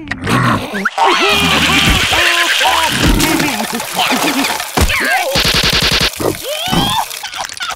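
Small cartoon creatures laugh loudly.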